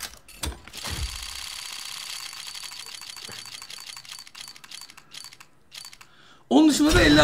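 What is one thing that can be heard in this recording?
A game's spinning reel ticks rapidly and slows down.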